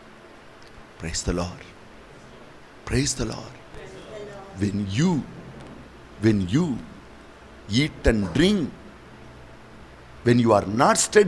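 A middle-aged man speaks slowly and forcefully through a microphone, in short phrases with pauses.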